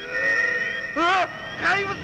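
A man screams in terror.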